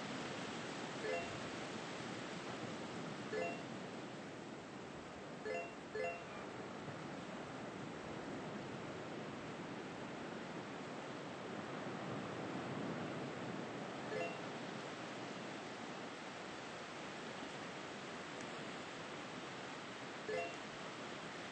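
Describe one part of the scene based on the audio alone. A short chime rings out now and then.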